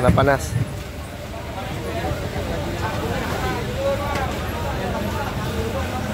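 Plastic bags rustle as a vendor bags food.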